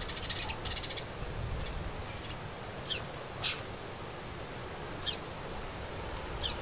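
A small bird chirps in short, high calls.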